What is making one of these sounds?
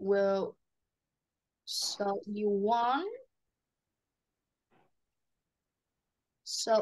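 A woman speaks slowly and clearly into a close microphone, reading out.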